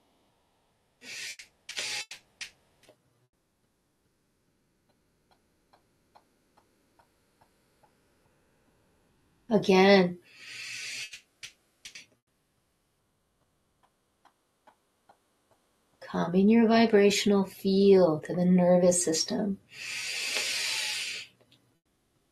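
An older woman breathes in and out deeply and audibly.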